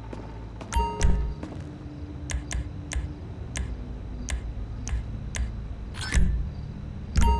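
Menu chimes and clicks sound as items are browsed.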